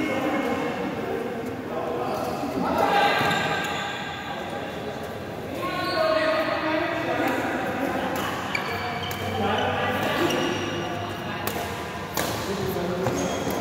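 A racket smacks a shuttlecock back and forth in a large echoing hall.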